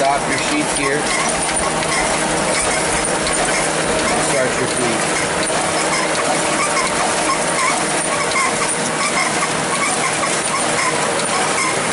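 A machine hums steadily close by.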